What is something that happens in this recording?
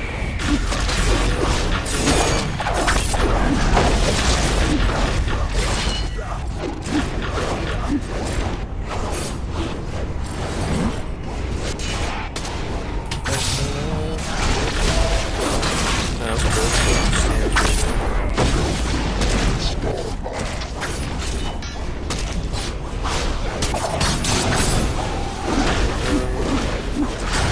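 Magic spells crackle and boom in a fierce battle.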